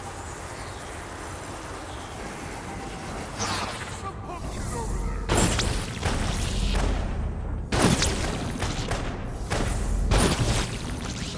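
Crackling energy blasts whoosh and burst in a video game.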